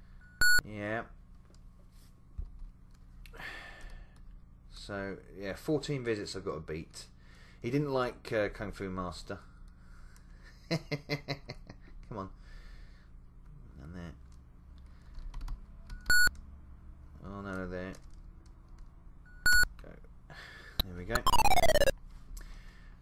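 A retro computer game plays short beeps and a falling electronic tone.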